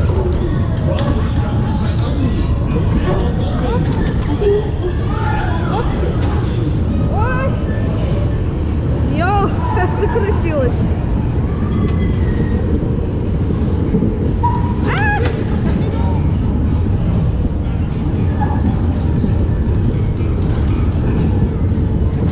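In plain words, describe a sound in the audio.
Bumper car motors hum and rumble steadily.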